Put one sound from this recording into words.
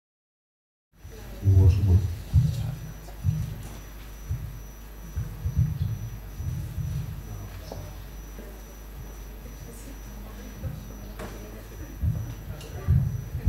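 A man speaks through a microphone and loudspeakers in a large room.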